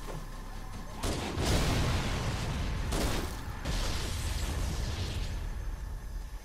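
A video game pistol fires several shots.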